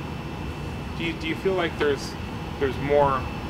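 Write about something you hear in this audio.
A man speaks calmly into a microphone at close range.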